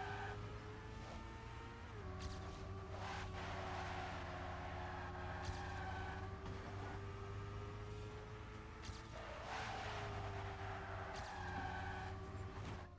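A racing car engine whines steadily at high speed.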